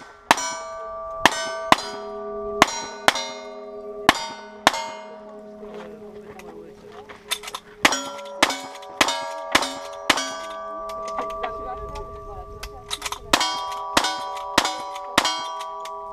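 Steel targets ring out with a clear metallic tone after hits.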